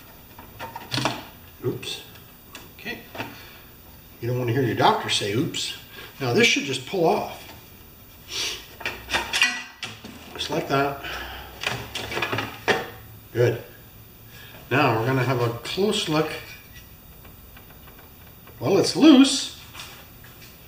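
Metal parts click and clank as a man handles an engine.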